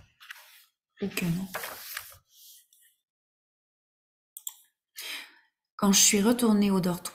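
A woman reads aloud calmly into a close microphone.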